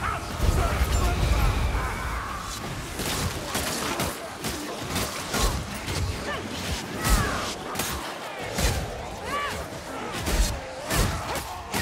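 Blades hack into bodies with sharp, wet thuds.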